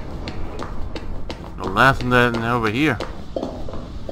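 Footsteps tap steadily on a hard floor.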